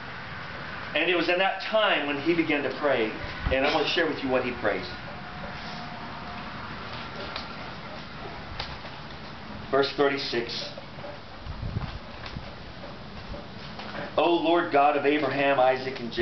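A man speaks calmly, in bursts with pauses.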